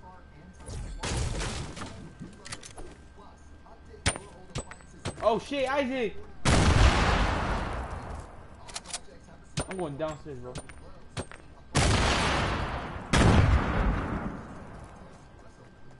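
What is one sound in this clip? Building pieces snap into place with loud crashing bursts.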